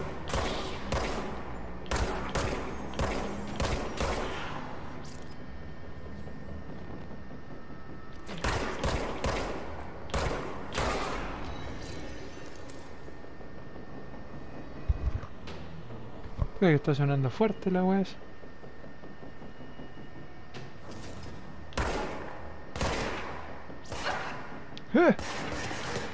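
Pistol shots ring out in quick bursts, echoing through a large hall.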